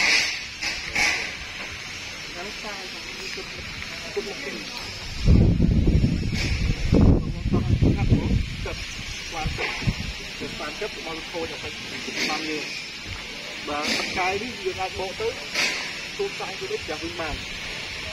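Adult men talk calmly with each other outdoors, close by.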